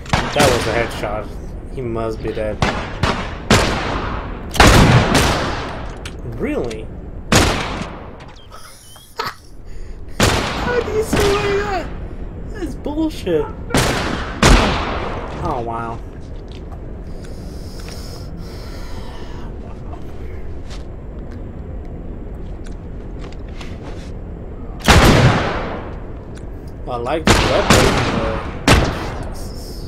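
Gunshots crack loudly, one after another.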